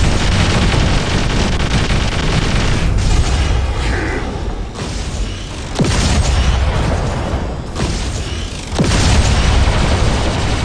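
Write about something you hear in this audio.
Heavy gunfire rattles and booms.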